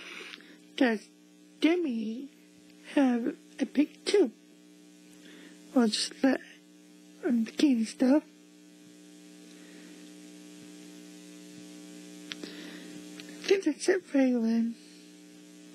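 A young girl exclaims excitedly in short, high bursts.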